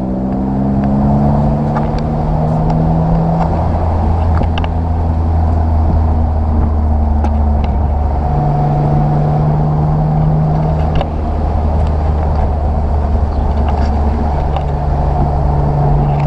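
Wind rushes past an open-top car.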